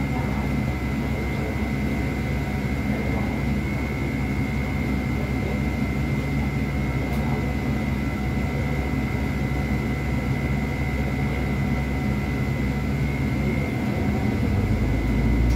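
A bus engine idles with a low, steady rumble.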